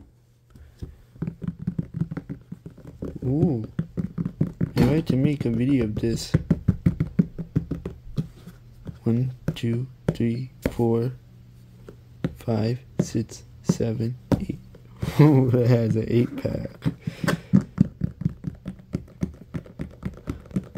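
Plastic toy buttons click as a hand presses them.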